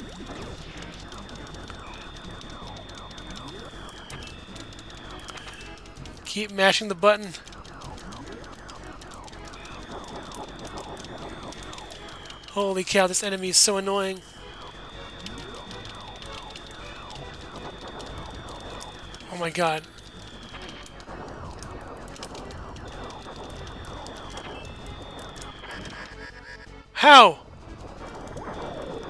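Video game laser shots fire rapidly.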